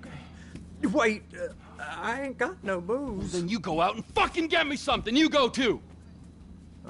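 A man shouts angrily and swears close by.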